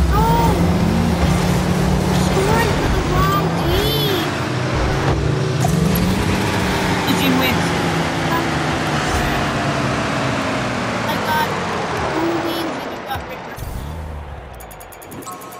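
Game car engines roar and boost.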